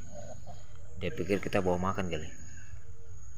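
A rooster crows loudly nearby.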